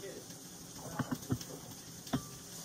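A glass bottle clinks against a glass.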